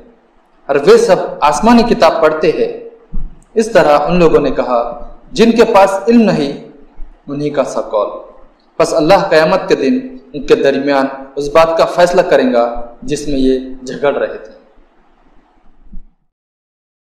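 A young man recites in a melodic chanting voice close to a microphone.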